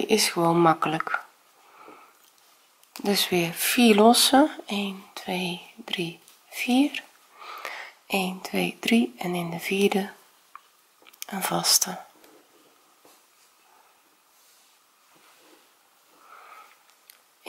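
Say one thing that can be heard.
A crochet hook softly rubs and pulls through yarn.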